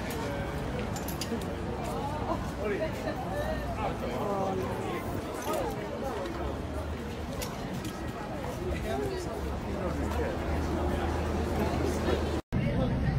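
Young women talk and laugh close by, outdoors.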